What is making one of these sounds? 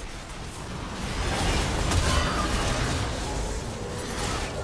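Spell effects crackle and boom in a fierce fight.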